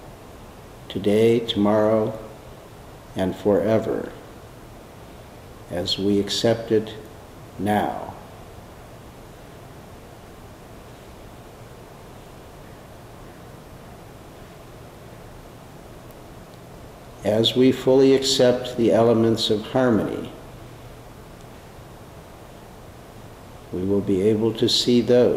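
An older man speaks calmly and slowly, with long pauses, close to the microphone.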